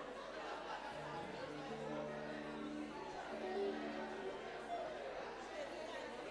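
An electric keyboard plays sustained notes.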